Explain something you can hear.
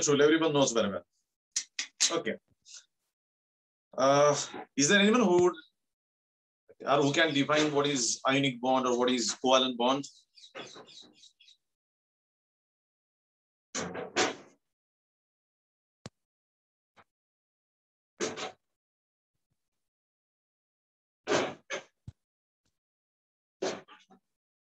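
A middle-aged man speaks calmly in short bursts with pauses, heard through an online call.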